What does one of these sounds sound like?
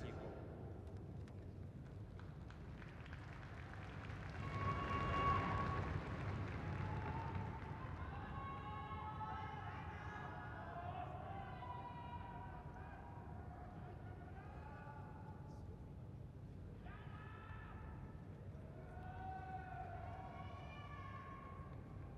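A large crowd roars and cheers in a big echoing hall.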